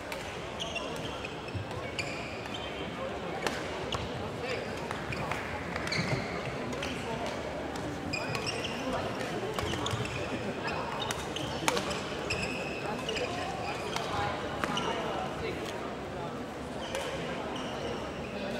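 Rackets strike a shuttlecock in quick rallies, echoing in a large hall.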